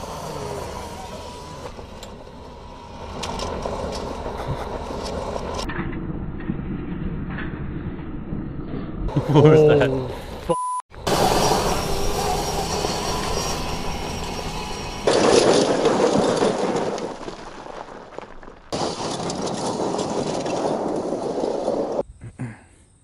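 A motorised vehicle roars as it skids across gravel.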